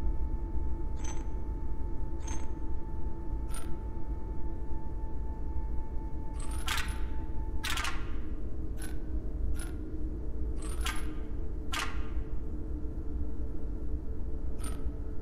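Short electronic clicks chime as puzzle tiles are selected.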